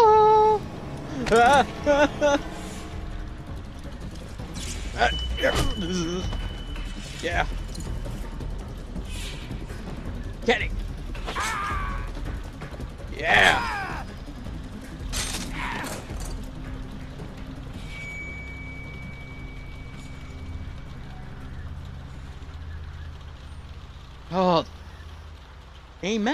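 A young man talks into a headset microphone with excitement.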